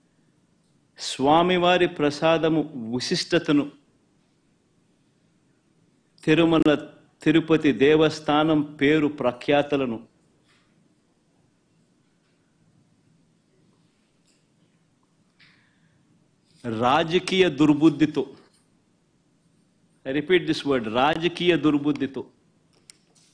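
A middle-aged man speaks with emphasis into a microphone, pausing between phrases.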